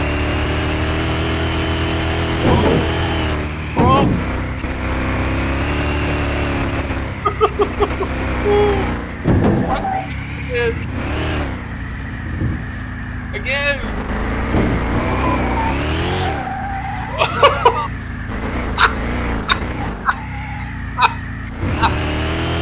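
A racing car engine roars at high speed, its pitch shifting as the car slows.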